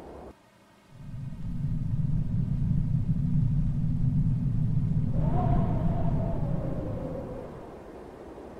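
Heavy doors rumble and grind as they slide open.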